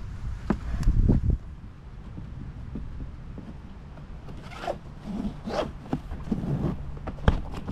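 A plastic buckle clicks.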